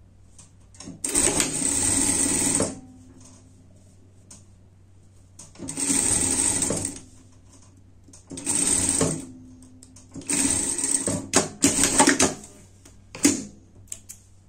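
A sewing machine runs in short bursts, stitching fabric.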